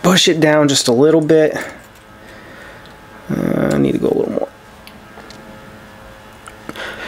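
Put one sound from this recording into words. Small metal parts click softly against each other.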